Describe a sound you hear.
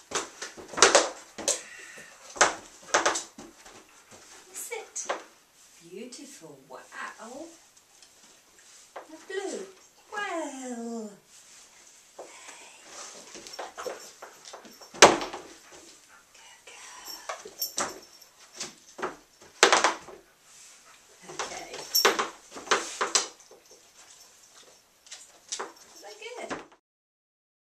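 A dog's paws knock and clatter on a wooden board.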